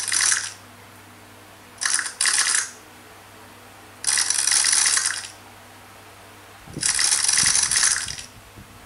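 A tablet game plays a hissing, scraping sound in short bursts.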